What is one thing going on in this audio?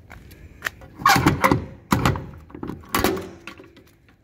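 A metal latch clanks as it is unfastened.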